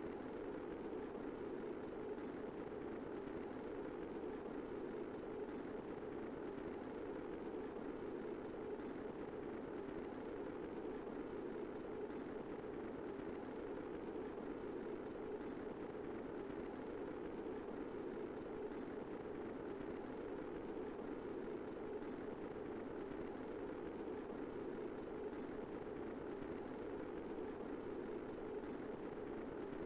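A spacecraft roars steadily as it burns through the air on re-entry.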